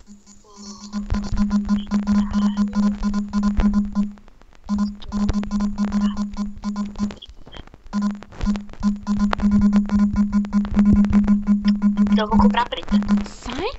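Soft keyboard taps click quickly one after another.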